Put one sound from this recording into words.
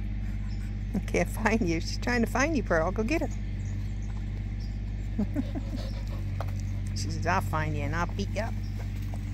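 A dog whines in high, wavering yelps.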